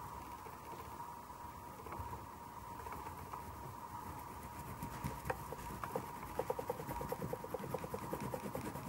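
Fingers rub and smudge pastel on paper with a soft scratching.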